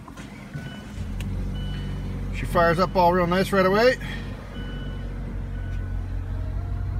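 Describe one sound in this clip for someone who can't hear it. A four-cylinder petrol car engine idles.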